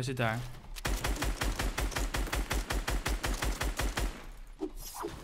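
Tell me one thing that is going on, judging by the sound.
Rapid gunshots fire in quick succession.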